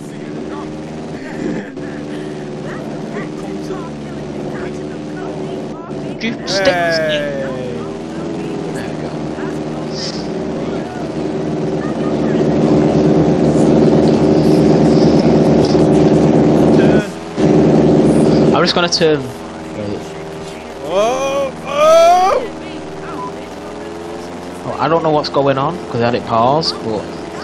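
A small propeller plane engine drones steadily, growing louder for a while before easing off.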